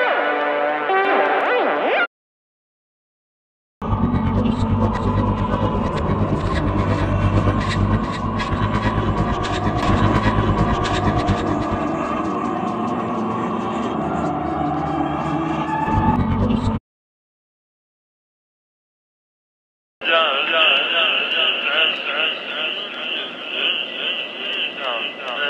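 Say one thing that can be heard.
Electronic music plays in loud bursts, with silent pauses between them.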